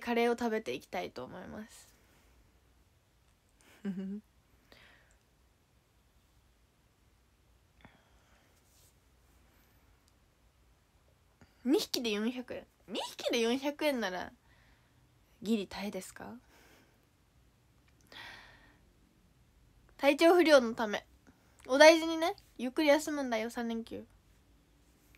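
A young woman talks casually and close by in short bursts, with pauses in between.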